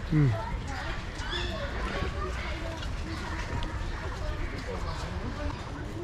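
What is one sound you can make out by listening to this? Small birds chirp and twitter in a cage.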